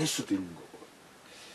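A middle-aged man speaks briefly and calmly, close by.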